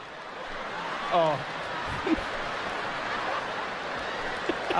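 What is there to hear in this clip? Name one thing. A man laughs softly, close up.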